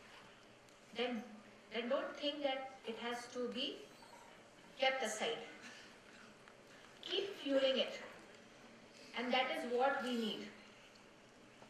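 A woman speaks calmly into a microphone over a loudspeaker, in phrases with pauses.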